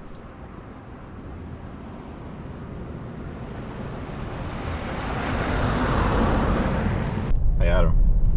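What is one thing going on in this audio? A car approaches on a gravel road and rushes past.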